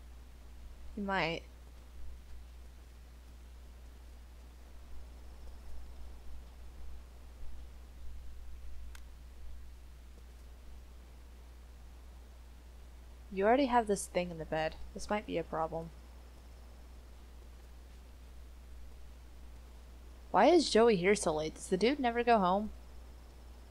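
A young woman talks with animation into a headset microphone.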